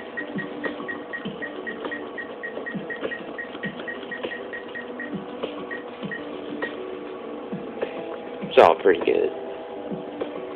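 An arcade machine plays looping electronic music.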